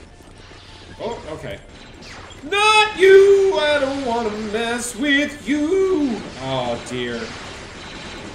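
A young man talks animatedly into a nearby microphone.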